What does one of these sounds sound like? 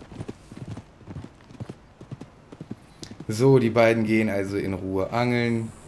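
Horse hooves clop on a dirt track.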